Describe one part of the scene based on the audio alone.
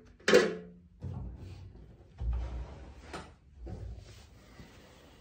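Wooden knocks and thumps sound as a double bass is moved and laid down.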